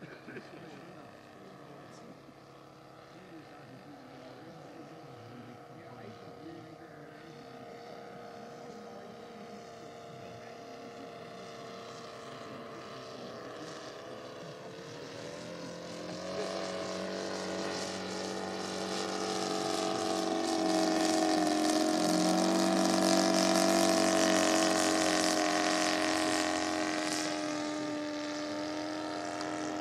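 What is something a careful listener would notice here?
A propeller plane's engine drones overhead, growing louder as it passes close and shifting in pitch.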